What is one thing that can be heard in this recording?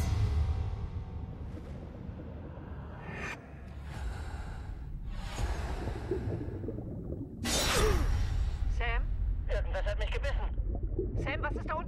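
Water rumbles and bubbles deep underwater.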